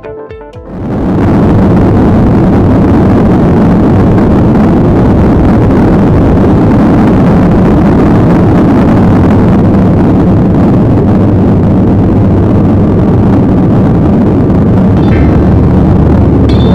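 Jet engines roar loudly as an airliner speeds down the runway and lifts off.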